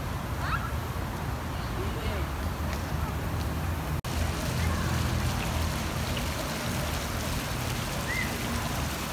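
Water jets splash steadily from fountains outdoors.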